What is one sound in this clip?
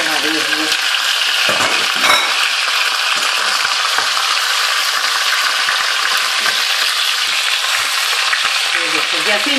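A wooden spoon knocks and scrapes against a metal pot.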